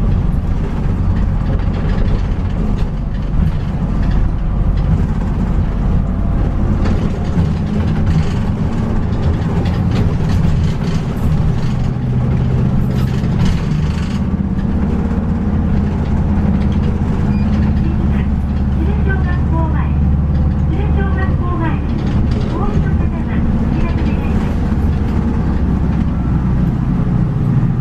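A diesel city bus engine rumbles from inside as the bus drives along.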